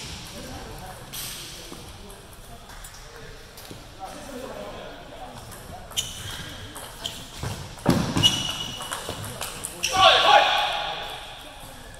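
A table tennis ball clicks against paddles and the table in a quick rally.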